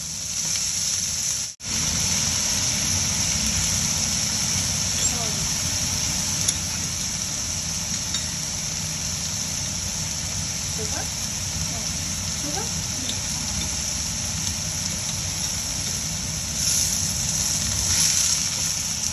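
A spatula scrapes and stirs in a metal pan.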